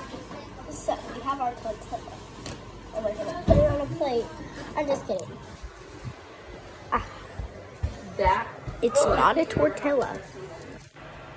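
A young girl talks close by with animation.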